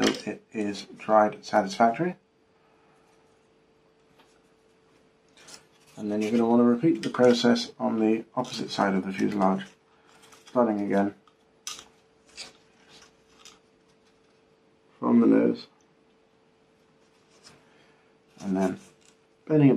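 Light wooden parts click and tap softly as they are handled.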